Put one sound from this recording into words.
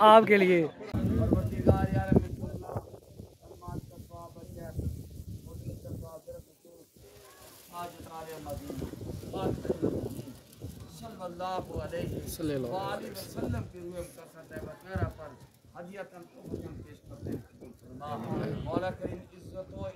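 A man recites a prayer aloud in a slow, chanting voice outdoors.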